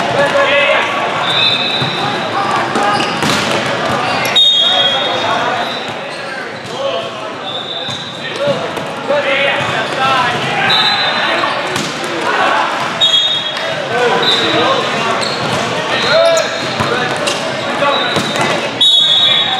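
A volleyball is struck with hard slaps.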